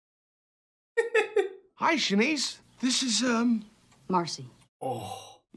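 A man speaks with excitement.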